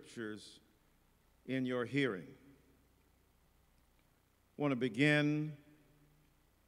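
A middle-aged man speaks slowly and emphatically through a microphone in a large echoing hall.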